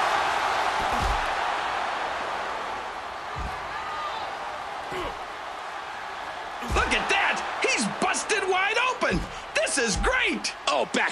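Heavy thuds land as wrestlers hit each other.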